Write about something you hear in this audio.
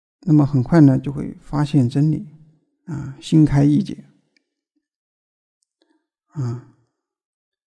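A young man speaks calmly and clearly into a microphone, with pauses.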